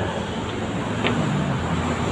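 A glass pane knocks against a wooden table.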